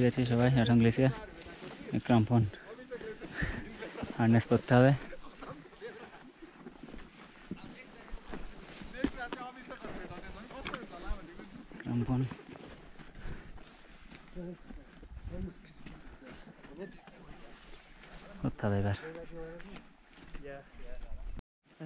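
Boots crunch on snow and ice.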